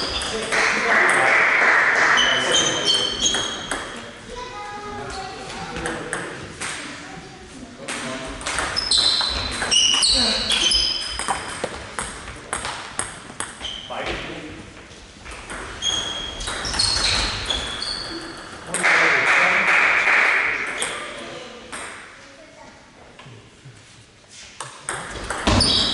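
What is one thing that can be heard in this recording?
A table tennis ball clicks back and forth off paddles and the table in an echoing hall.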